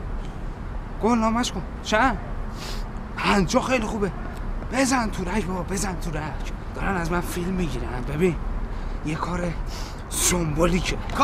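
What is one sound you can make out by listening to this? A man talks urgently into a phone close by.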